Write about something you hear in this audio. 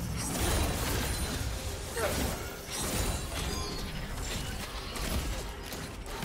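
Magic spells whoosh and crackle during a fight in a video game.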